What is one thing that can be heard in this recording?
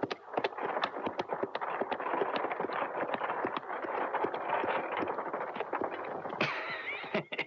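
Horse hooves clop steadily.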